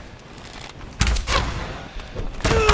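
A pickaxe strikes a creature.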